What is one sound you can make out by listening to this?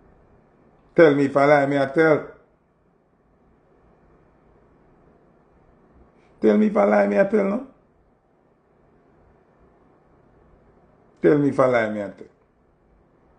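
A man sings short, drawn-out phrases close by, with pauses between them.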